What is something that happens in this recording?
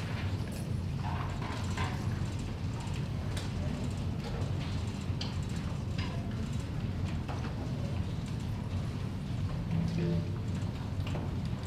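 A jazz band plays softly in a hall.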